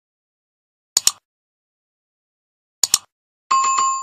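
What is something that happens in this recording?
A mouse button clicks twice.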